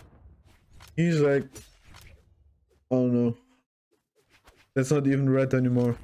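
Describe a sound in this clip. A young man speaks loudly and with animation close to a microphone.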